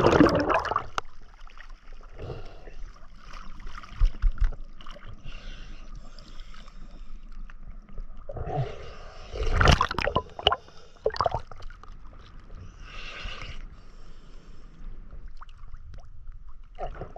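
Small waves lap and slosh gently at the surface.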